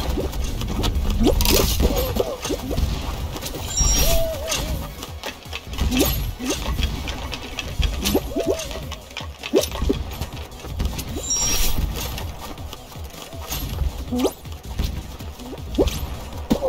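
Bouncy cartoon sound effects pop and boing.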